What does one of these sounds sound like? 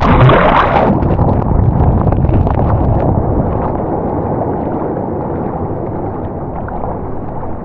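Arms splash as they paddle through the water.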